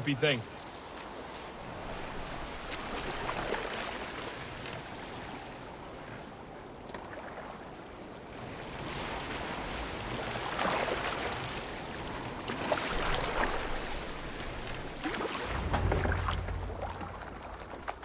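Water splashes softly against a rowing boat.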